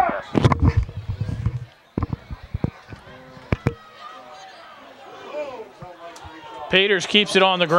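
Players and spectators shout and cheer outdoors.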